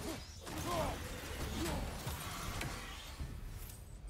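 An axe strikes a creature with a heavy thud.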